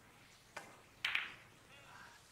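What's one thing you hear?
Billiard balls clack together.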